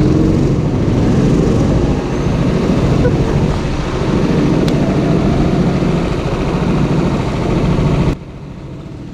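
A go-kart engine roars loudly up close, then cuts out.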